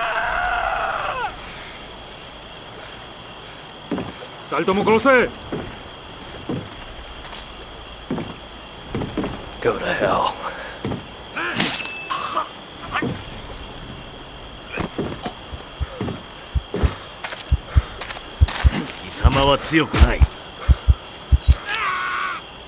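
A man shouts and growls angrily close by.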